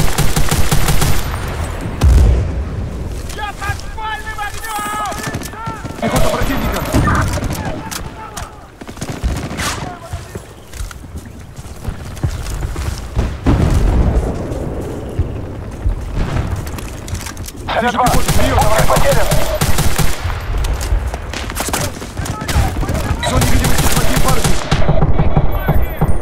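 Rapid bursts of automatic gunfire crack close by.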